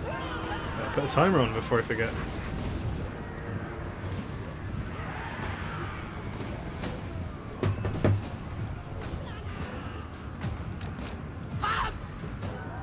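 Cannon shots boom now and then.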